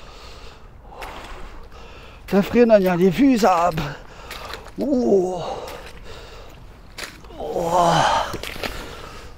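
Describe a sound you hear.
A person splashes through shallow water.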